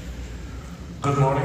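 A man begins speaking through a microphone.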